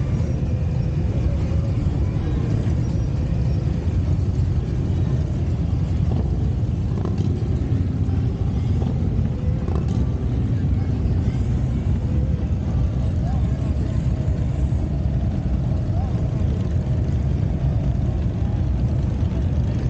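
Motorcycle engines rumble as a line of motorcycles rides past close by.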